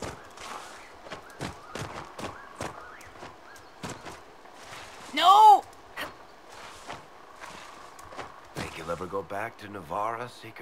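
Hands and feet scrape and thump on rock as someone climbs.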